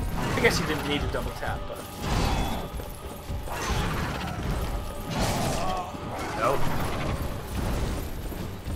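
Two young men talk with animation over microphones, close by.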